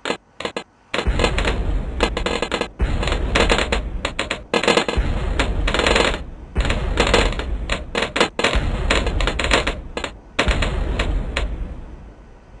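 Rapid popping bursts of game sound effects crackle in quick succession.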